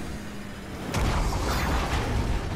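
A car explodes with a deep boom.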